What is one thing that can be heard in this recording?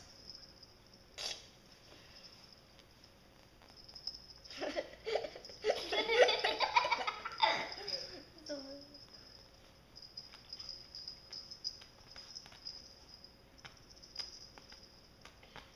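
Kittens scuffle and scratch on a woven mat.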